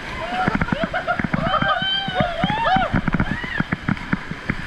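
A young woman screams and laughs with excitement.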